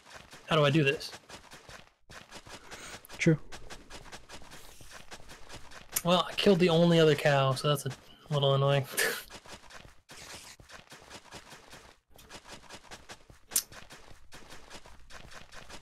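Footsteps crunch steadily on grass and soil.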